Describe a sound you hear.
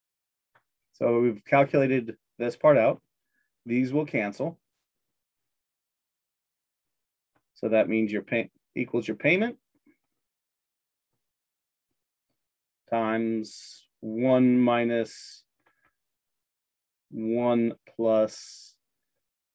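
A man explains calmly, close to a microphone, with pauses.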